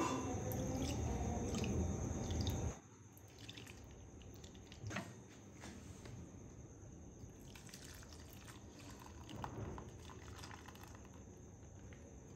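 Oil pours in a thin stream and trickles softly into a cloth.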